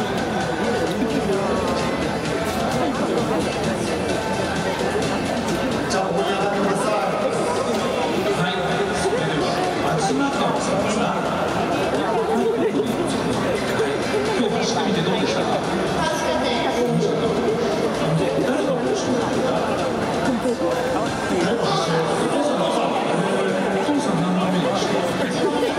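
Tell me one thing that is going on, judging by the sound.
A crowd murmurs and chatters in a large open stadium.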